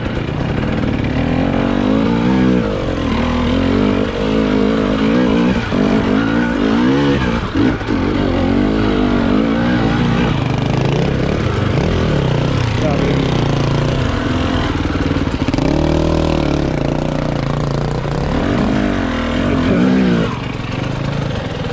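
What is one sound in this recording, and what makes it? A dirt bike engine revs up and down loudly, close by.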